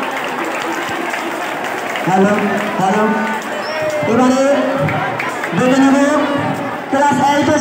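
A crowd of children chatters and calls out nearby.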